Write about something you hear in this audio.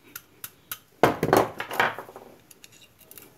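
A hammer clatters down onto a hard surface.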